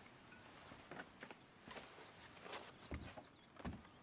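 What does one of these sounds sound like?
Boots thud on wooden boards.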